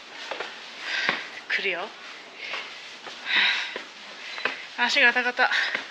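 Footsteps clatter up stone stairs.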